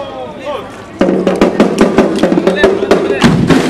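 Drums beat a steady marching rhythm.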